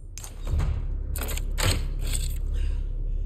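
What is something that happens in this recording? A key turns and clicks in an old lock.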